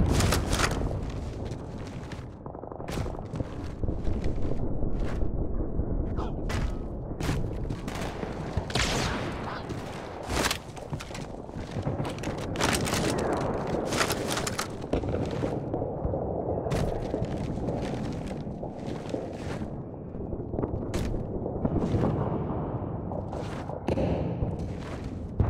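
Heavy footsteps thud on hard ground.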